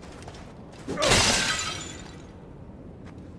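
Clay pots shatter with a loud crash.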